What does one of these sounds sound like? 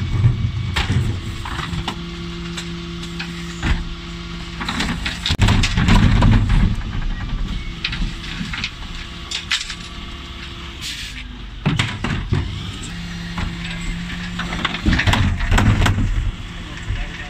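Plastic bins bang and clatter against the truck.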